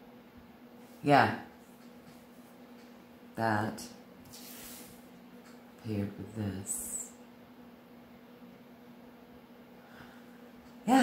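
A middle-aged woman speaks calmly and briefly, close by, with pauses between words.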